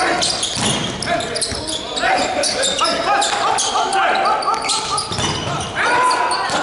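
A volleyball is struck with loud slaps.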